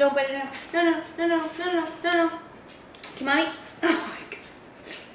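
A young woman talks cheerfully nearby, with a sing-song voice.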